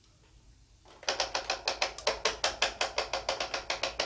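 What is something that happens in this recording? A handheld electric device crackles with rapid, loud snapping.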